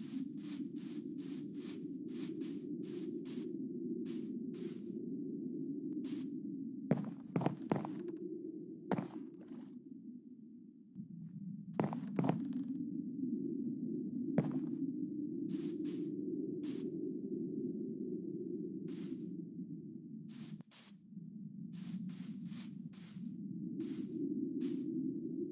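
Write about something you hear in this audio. Footsteps crunch steadily over grass and wooden planks.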